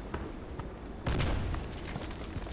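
An explosion booms in the distance.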